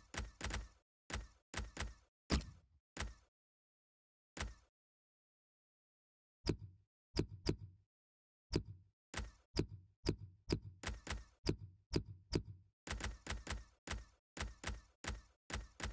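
Short menu clicks tick in quick bursts.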